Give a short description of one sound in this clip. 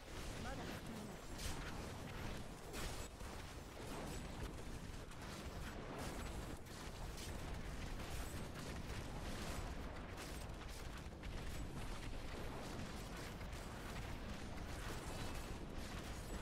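Explosions and fiery blasts crash again and again.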